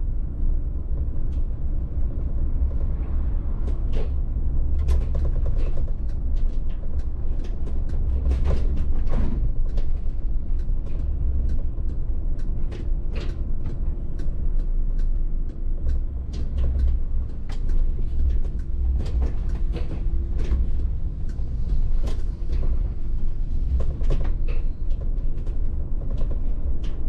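The bus body rattles and clicks over the road.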